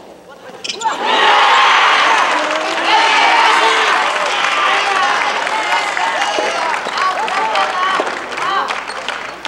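A crowd of spectators cheers and shouts loudly in a large echoing hall.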